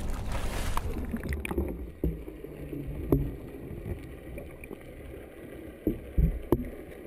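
Water gurgles, heard muffled from underwater.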